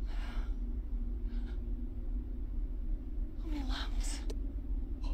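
A young man gasps in surprise close by.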